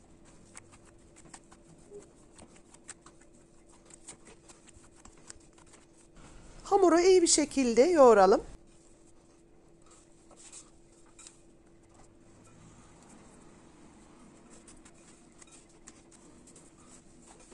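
Hands knead soft, sticky dough with quiet squelching sounds.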